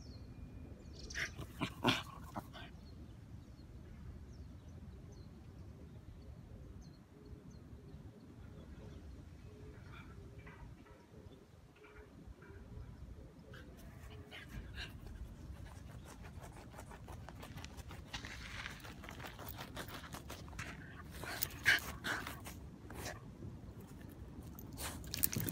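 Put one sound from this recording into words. A dog digs with its paws in sandy soil.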